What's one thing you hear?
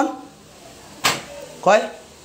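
A door latch clicks.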